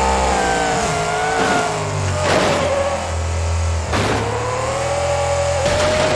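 A truck crashes and its body bangs against the ground.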